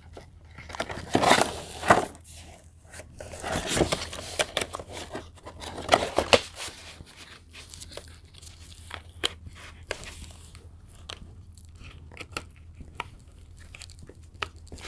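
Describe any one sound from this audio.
Plastic wrapping crinkles and rustles as it is peeled away.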